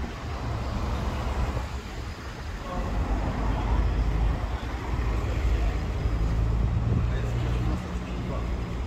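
Cars drive past nearby on a road.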